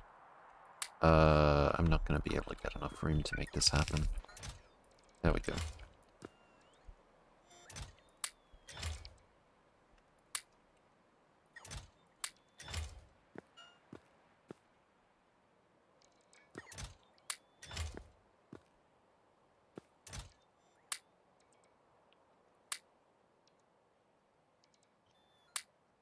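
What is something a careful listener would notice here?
Game menu clicks sound again and again.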